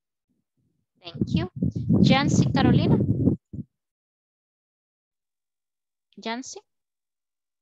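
A young woman speaks briefly over an online call, with pauses.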